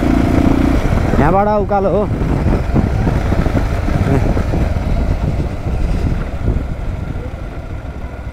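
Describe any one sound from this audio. Wind rushes past a moving motorcycle.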